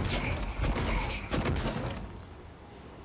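Gunshots blast with loud explosions.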